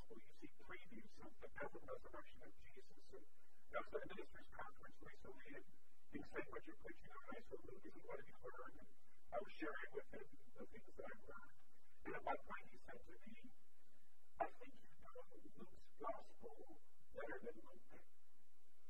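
A middle-aged man speaks with animation into a microphone, heard over loudspeakers.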